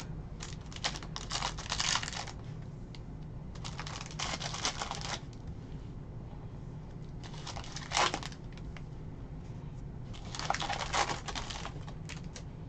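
A foil wrapper crinkles and tears as hands open a pack.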